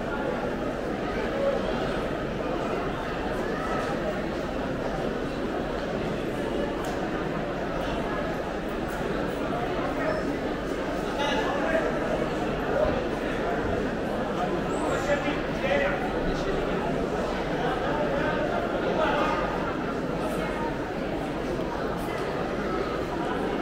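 A crowd murmurs and chatters in an echoing covered hall.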